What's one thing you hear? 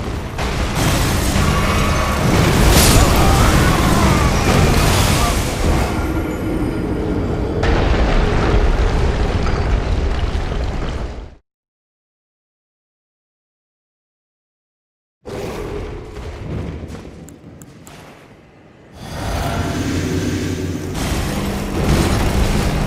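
A huge beast roars and stomps heavily.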